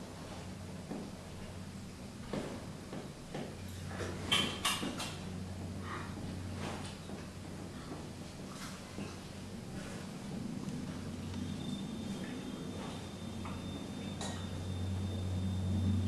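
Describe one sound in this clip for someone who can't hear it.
A person sips noisily from a glass.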